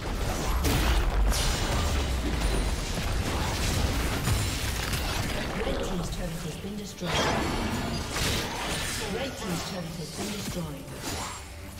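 Video game battle effects clash and burst in quick succession.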